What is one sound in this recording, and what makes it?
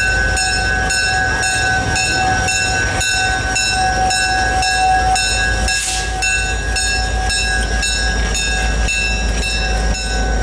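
Train wheels clack over the rail joints.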